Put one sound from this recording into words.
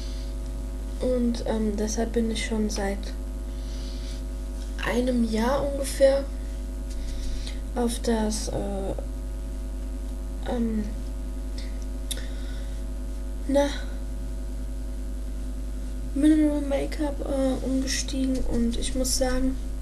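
A young woman talks casually close to a microphone, in short bursts.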